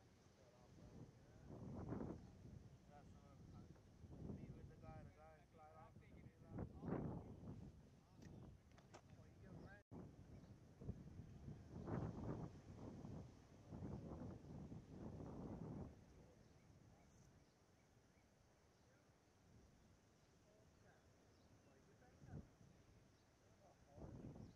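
Wind gusts blow outdoors.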